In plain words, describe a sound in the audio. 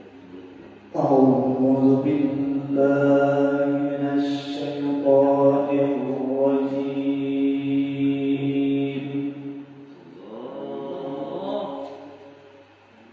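A man chants a long, melodic recitation through a microphone and loudspeaker in an echoing hall.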